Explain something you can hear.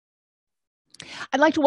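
A woman speaks calmly through a microphone, as on an online call.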